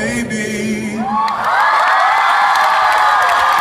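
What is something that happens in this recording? A crowd screams and cheers loudly.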